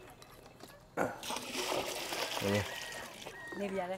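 Water splashes as a bucket is emptied.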